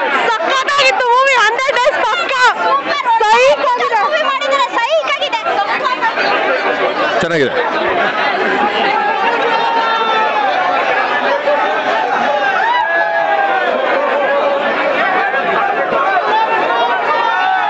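A dense crowd of young men and women chatter and shout excitedly close by.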